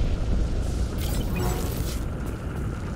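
A crackling energy blast whooshes and bursts.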